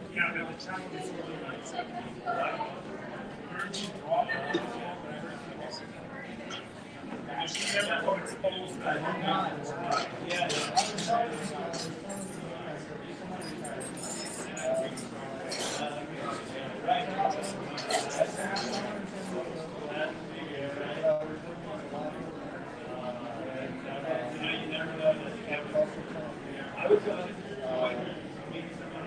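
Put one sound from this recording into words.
Dishes and cutlery clink now and then.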